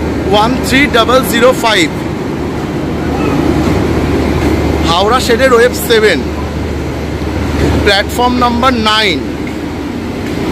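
A locomotive engine hums steadily nearby.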